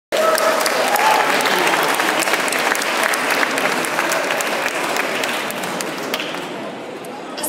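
A crowd applauds and cheers in a large echoing hall.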